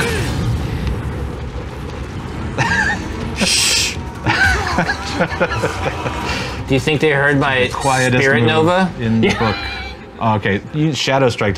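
Several men talk and laugh with animation through microphones.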